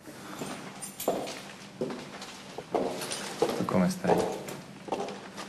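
A man speaks quietly and slyly, close by.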